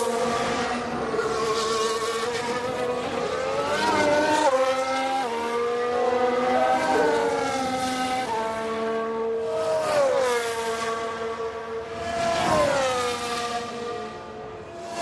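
A racing car engine whines loudly, rising and dropping in pitch as it shifts gears.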